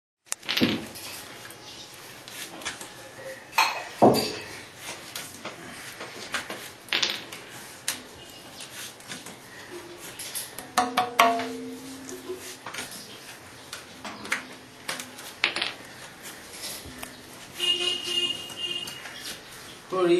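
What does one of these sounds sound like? A small hammer taps on a drum's rim, making short knocks now and then.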